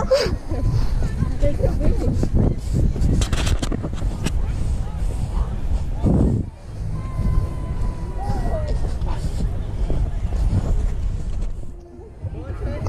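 Wind buffets loudly outdoors with a low rumble.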